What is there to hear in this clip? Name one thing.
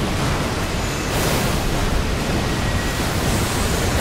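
A magic blast bursts with a loud rushing whoosh.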